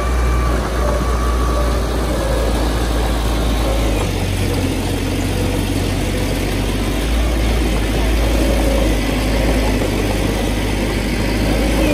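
Earth scrapes and slides under a bulldozer's blade.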